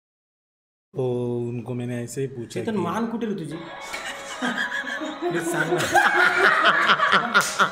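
A group of men and women laugh loudly together.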